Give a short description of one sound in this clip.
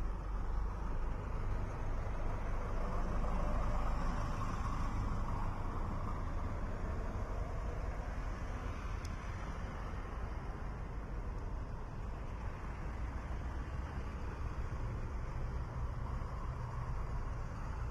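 Car engines hum as vehicles drive past close by, one after another.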